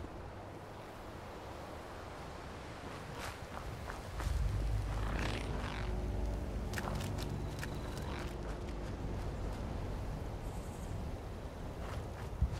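Footsteps rustle through grass and dry leaves.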